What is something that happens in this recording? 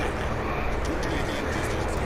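An elderly man speaks gravely.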